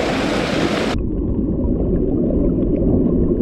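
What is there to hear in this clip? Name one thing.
Water gurgles dully, heard from underwater.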